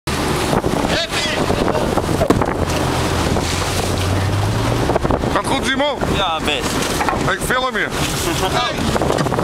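A boat engine rumbles steadily outdoors in wind.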